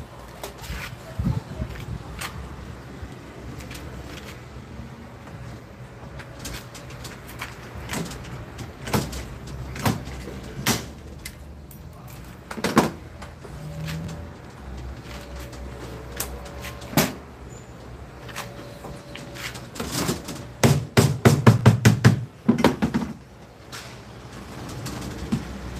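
Metal tools click and knock against copper tubing.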